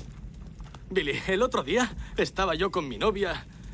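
A man speaks tensely close by.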